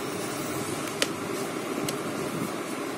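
A plastic dial clicks as a hand turns it.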